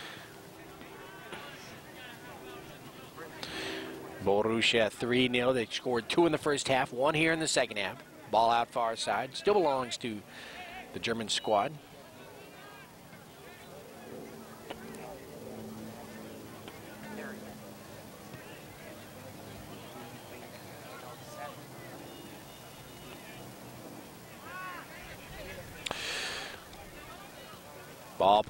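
A crowd of spectators chatters and calls out in the distance, outdoors.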